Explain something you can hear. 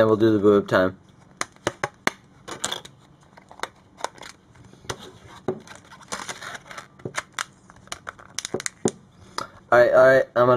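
Hands handle a phone, with plastic clicks and rustling close by.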